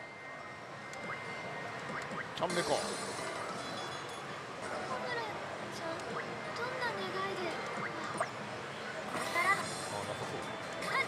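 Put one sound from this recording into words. A slot machine plays loud electronic music and jingles.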